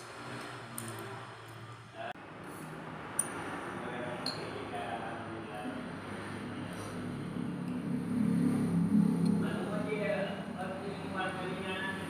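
A spoon scrapes and clinks against a plate.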